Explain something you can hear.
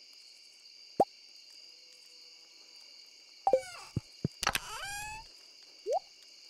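Game menu sounds blip and chime as inventory opens and closes.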